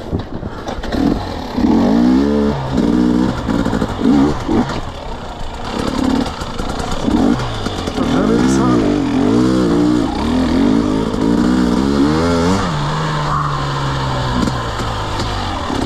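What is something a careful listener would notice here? A dirt bike engine revs up and down, close by.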